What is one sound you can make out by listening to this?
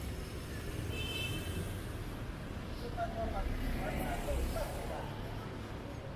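A van drives past on the street.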